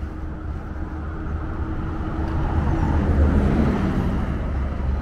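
Car traffic hums along the street outdoors.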